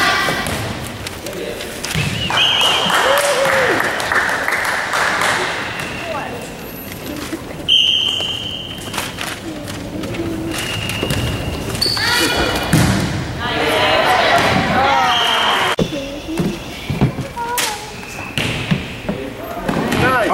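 A volleyball is struck with a thump.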